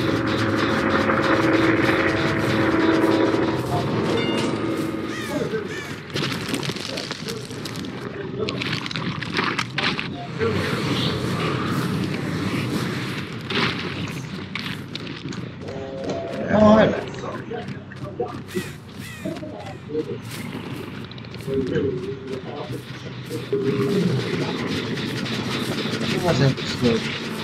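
Heavy footsteps tread through grass.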